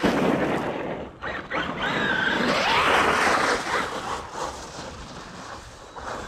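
Wet slush sprays and splashes under a toy car's wheels.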